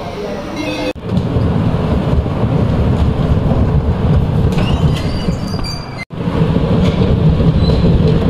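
A bumper car rumbles as it drives.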